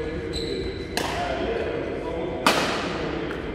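A racket strikes a shuttlecock with a sharp smack that echoes through a large hall.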